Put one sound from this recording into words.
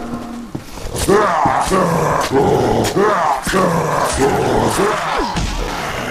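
Heavy blows thud against a body in quick succession.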